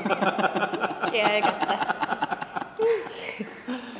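Several adults laugh together close by.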